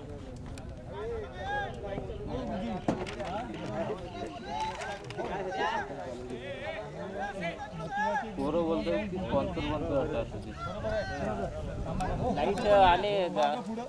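Several young men talk and call out to each other outdoors.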